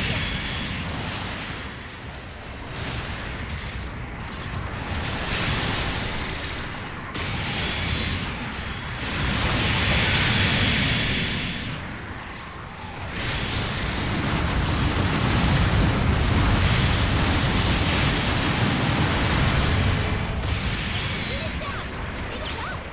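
A robot's thrusters roar steadily.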